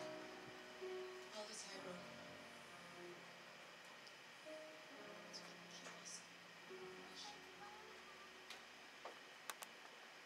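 A group of people sings softly together.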